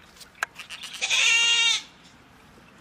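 A goat bleats loudly close by.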